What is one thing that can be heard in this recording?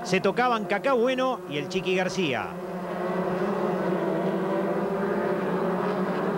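Racing car engines roar in a steady, droning chorus.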